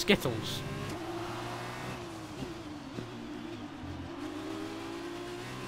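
A racing car engine whines at high revs, dropping in pitch as the car shifts down.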